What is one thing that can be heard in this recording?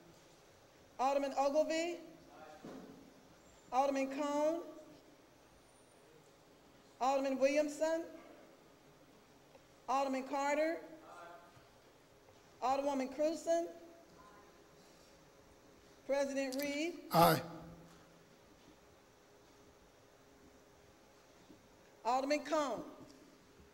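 A man speaks into a microphone in short, measured bursts, heard over a loudspeaker in a large echoing hall.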